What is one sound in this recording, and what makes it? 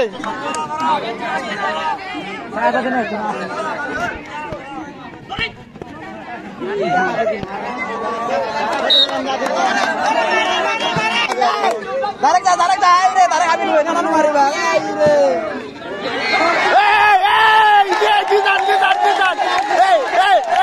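A crowd of young men shouts and cheers outdoors, growing louder near the end.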